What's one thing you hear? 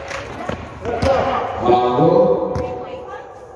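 Young men call out to each other across an echoing court.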